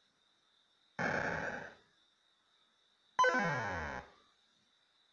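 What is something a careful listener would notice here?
A video game plays short bursts of electronic sound effects.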